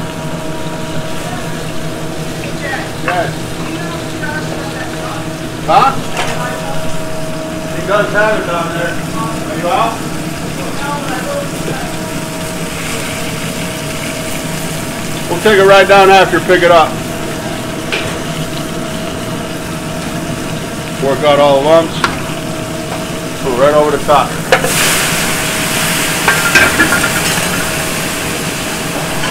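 Gas burners hiss steadily.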